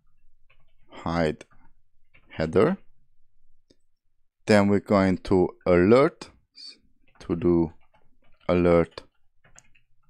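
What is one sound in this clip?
A young man speaks calmly into a close microphone, in short phrases with pauses.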